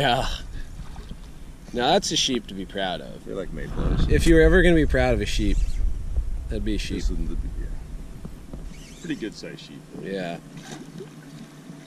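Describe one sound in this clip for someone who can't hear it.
A man talks with excitement close by, outdoors.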